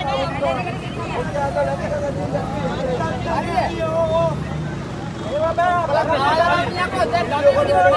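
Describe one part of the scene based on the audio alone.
A man shouts angrily close by.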